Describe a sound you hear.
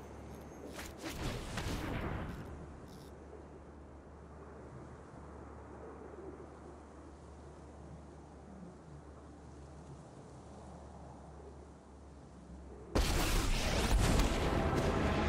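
A digital card game plays a swelling magical sound effect.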